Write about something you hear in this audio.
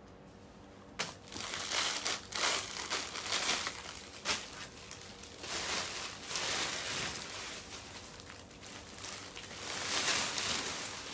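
Plastic bags crinkle and rustle loudly close by.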